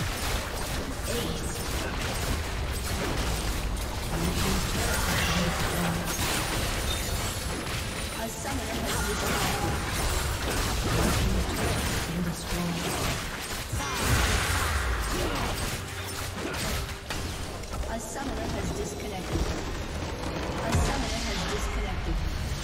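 Spells and attacks crackle and boom in a fast game battle.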